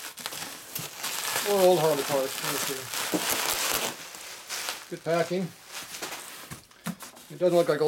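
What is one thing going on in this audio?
Plastic bubble wrap crinkles and rustles as it is handled.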